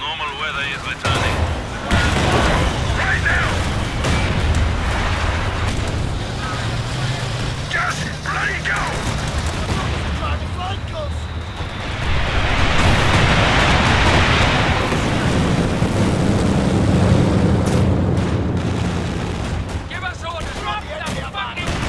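Explosions boom and rumble with heavy battle noise.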